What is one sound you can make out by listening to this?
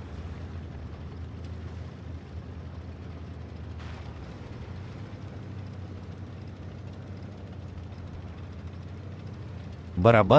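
A tank engine rumbles low and steady as the tank rolls along.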